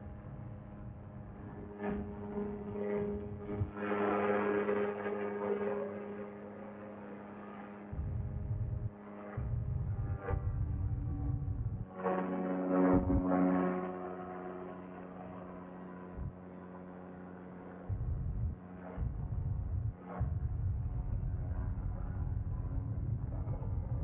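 A paramotor engine drones steadily.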